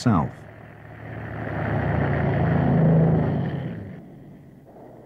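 A propeller plane engine roars loudly.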